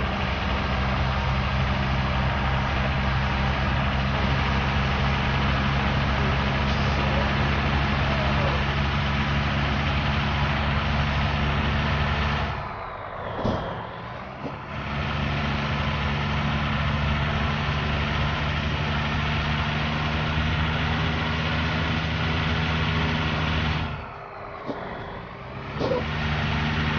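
A truck engine drones steadily, easing off briefly twice.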